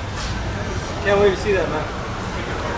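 A man speaks briefly and close by.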